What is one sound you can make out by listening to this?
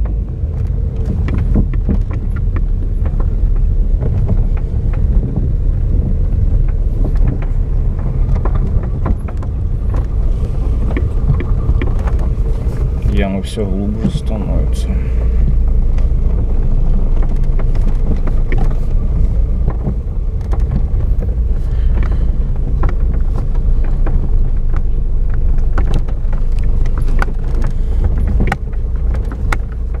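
A car engine rumbles steadily from inside while driving.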